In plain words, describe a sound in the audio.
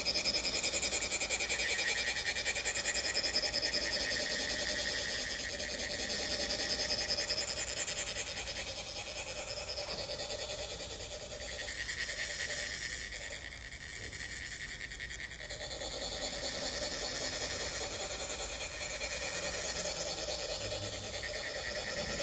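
Metal funnels rasp steadily as sand trickles out.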